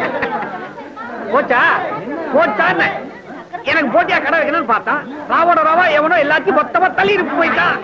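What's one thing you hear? A man speaks loudly with animation, close by.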